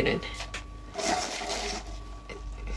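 Ice rattles in a cup as a straw stirs it.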